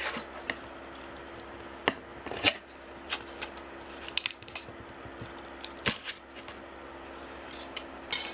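A plastic part clicks and scrapes against a glass plate.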